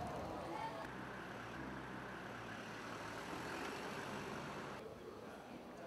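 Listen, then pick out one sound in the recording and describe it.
A crowd of people murmurs on a busy street.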